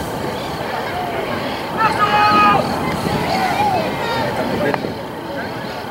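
Spectators chatter and call out outdoors.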